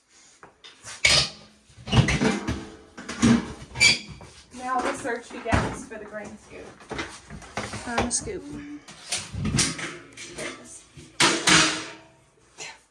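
Metal bin lids clank and rattle.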